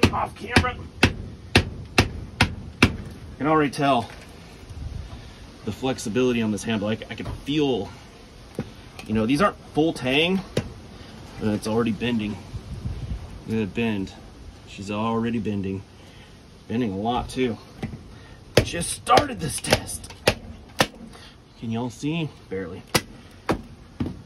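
A mallet knocks sharply on the back of a knife blade.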